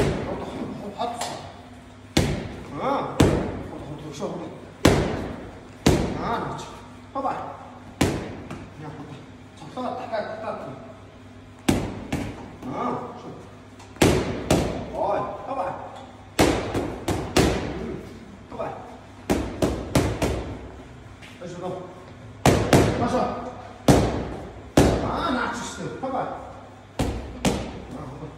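A man gives instructions to a boxer, calmly and close by.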